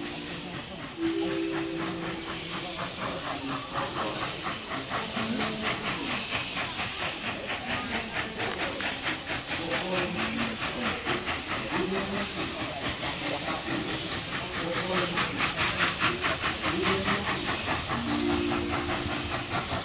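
A steam locomotive chuffs rapidly and steadily as it pulls away.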